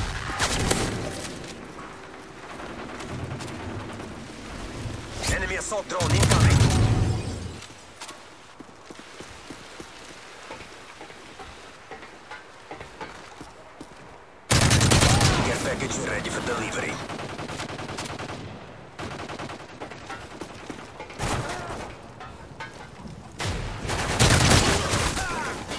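Gunfire rattles in short, loud bursts.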